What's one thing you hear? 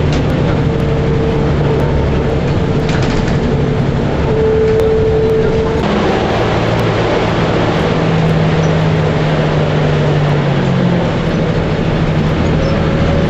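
A bus engine hums and drones steadily from inside the bus.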